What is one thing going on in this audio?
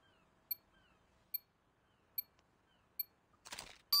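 A short electronic beep sounds once a second, counting down.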